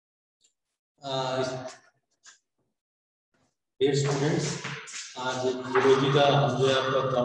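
A man speaks clearly and calmly up close.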